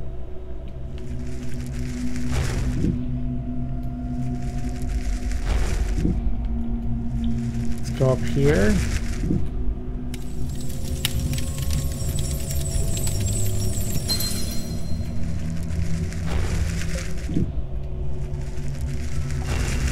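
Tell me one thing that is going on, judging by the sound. A fiery beam roars and crackles in bursts.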